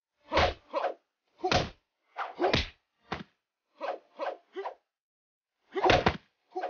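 Fighters trade blows with sharp thuds and swishes.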